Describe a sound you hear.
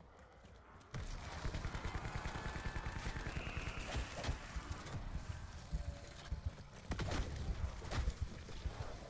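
A rapid-fire gun shoots in long, quick bursts.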